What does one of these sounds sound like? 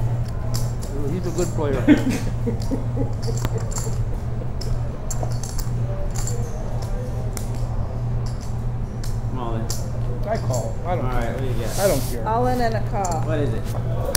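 Poker chips click against each other.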